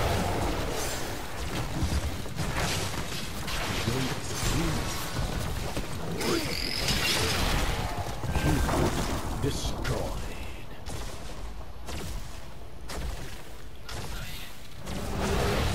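Game fighting sounds clash with blasts and zaps.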